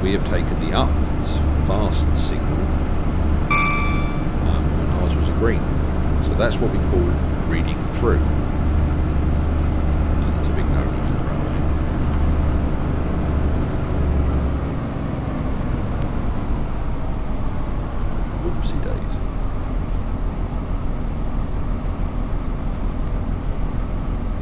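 A train engine rumbles steadily from inside the cab.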